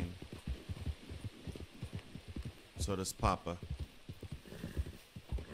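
A horse gallops with heavy, rapid hoofbeats on soft ground.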